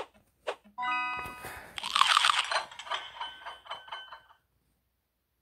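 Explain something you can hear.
Bright chimes ring out as a level is completed.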